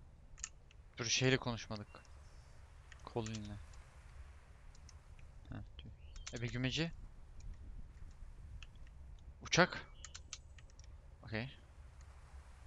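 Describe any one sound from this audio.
A young man speaks now and then into a headset microphone, in short bursts.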